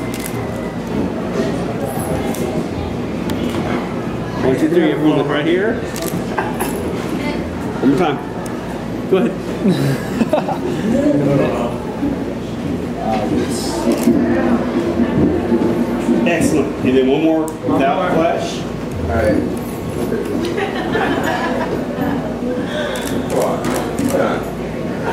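Several young women chatter and laugh close by.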